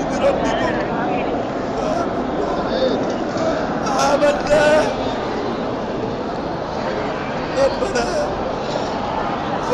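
A crowd of men prays aloud, crying out with emotion close by.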